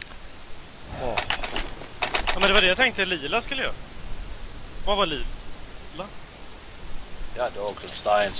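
A young man talks casually into a microphone, close up.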